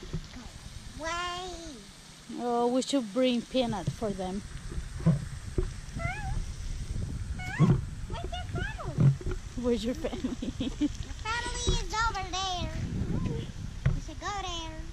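Young girls talk and call out excitedly close by.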